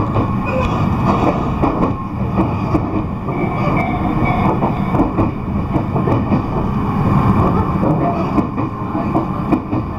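A train rumbles steadily along its tracks, heard from inside a carriage.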